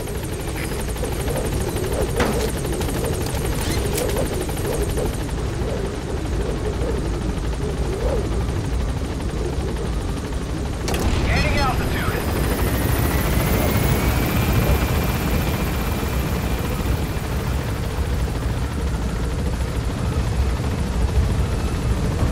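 A helicopter's rotor thuds.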